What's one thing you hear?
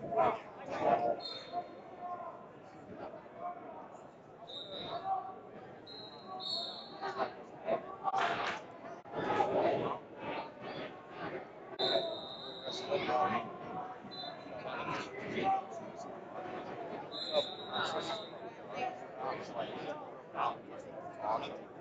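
A middle-aged man talks with animation, close by, in a large echoing hall.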